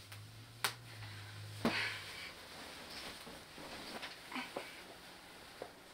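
A bedsheet rustles as it is pulled overhead.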